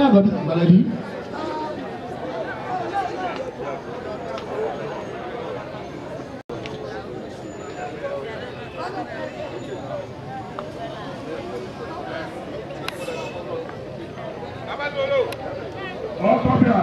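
A large crowd of women murmurs and chatters outdoors.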